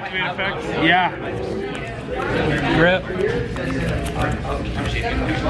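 Playing cards slide and tap on a cloth mat.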